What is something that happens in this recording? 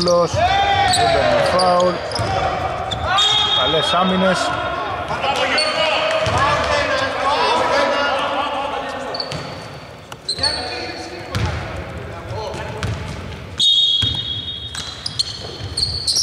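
Sneakers squeak sharply on a hardwood floor in a large echoing hall.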